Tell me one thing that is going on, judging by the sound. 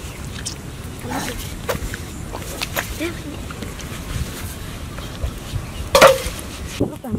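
A fish flaps and slaps on wet sand.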